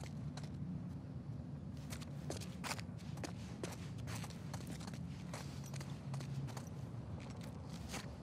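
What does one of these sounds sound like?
Footsteps tap on a hard floor at a walking pace.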